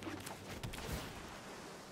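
A magical beam whooshes across with a sparkling hiss.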